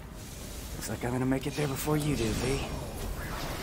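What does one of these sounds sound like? A young man speaks in a low, calm voice.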